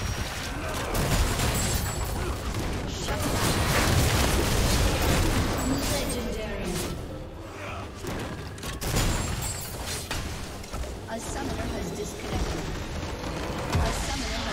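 Magic blasts and weapon hits crackle rapidly in a fierce fight.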